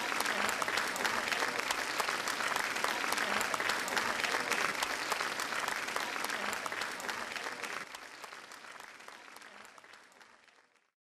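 A large audience applauds loudly in an echoing hall, then the applause fades away.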